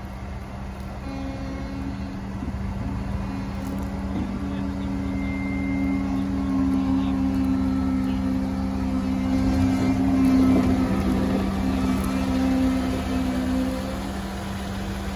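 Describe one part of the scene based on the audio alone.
Big tyres crunch over dirt and stones.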